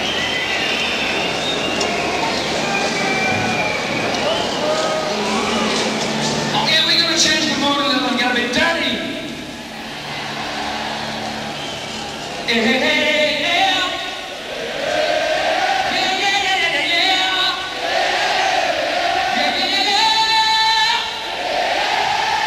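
A man sings loudly through loudspeakers.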